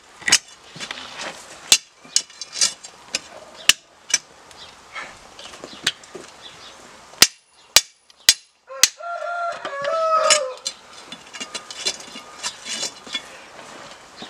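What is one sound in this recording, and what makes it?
A metal rod scrapes and clinks against burning coals.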